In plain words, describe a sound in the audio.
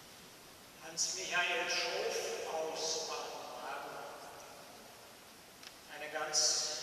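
A bearded older man speaks calmly into a microphone in a large echoing hall.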